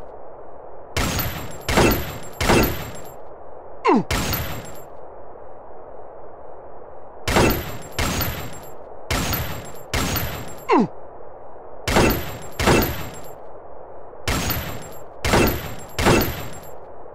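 Pistol shots fire in quick bursts of two or three, each with a short ringing tail.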